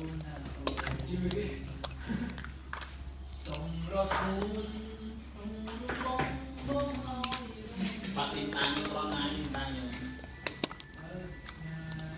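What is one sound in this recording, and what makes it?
A plastic toy egg clicks as it is pulled open.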